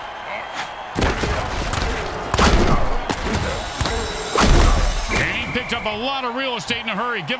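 Armored players crash together in heavy, thudding tackles.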